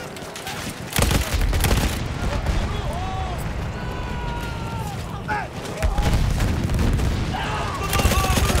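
A heavy machine gun fires in rapid bursts close by.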